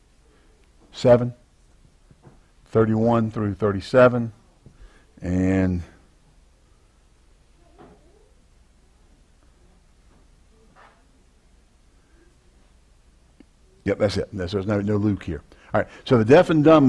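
A man speaks calmly into a clip-on microphone, in short bursts with pauses.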